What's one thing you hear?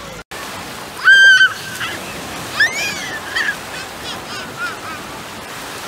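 A little girl squeals and laughs close by.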